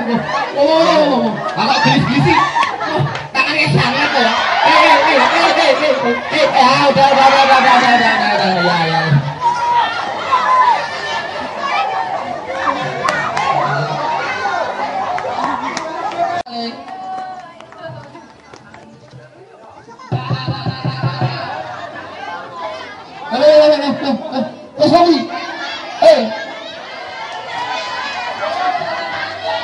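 A crowd of men and women shouts and cheers outdoors.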